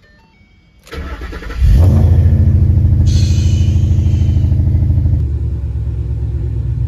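A car engine starts and idles with a deep, loud rumble.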